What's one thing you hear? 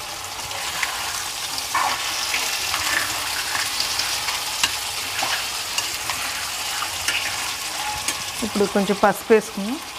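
A spoon scrapes and stirs food in a metal pan.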